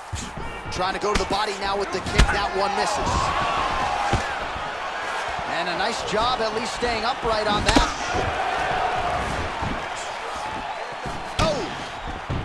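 Punches land with heavy, dull thuds.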